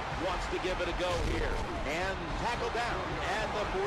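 Football players collide in a tackle.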